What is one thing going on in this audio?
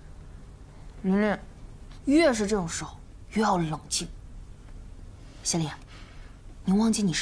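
A young woman speaks firmly and calmly, close by.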